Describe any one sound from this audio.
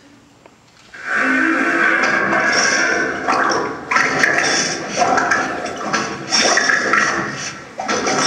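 Loud music plays through loudspeakers in a large hall.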